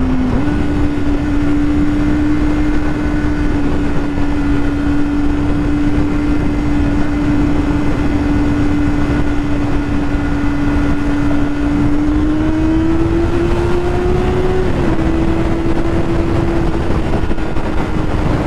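A motorcycle engine hums steadily at cruising speed, rising slightly in pitch now and then.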